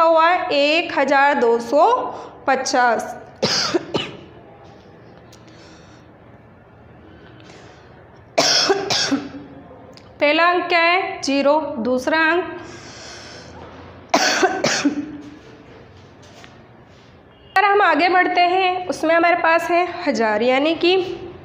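A young woman speaks clearly and steadily, as if teaching, close by.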